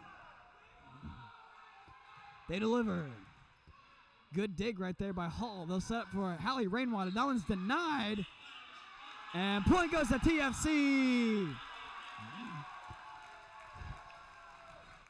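A volleyball thuds as it is hit and bounces on the floor.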